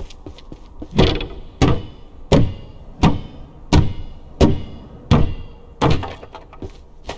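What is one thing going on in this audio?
Heavy blows crack and splinter a wooden crate.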